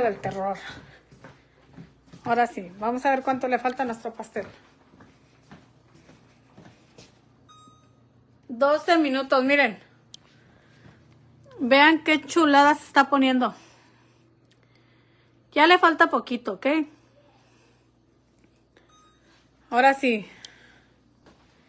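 A young woman talks close by with animation, in short bursts.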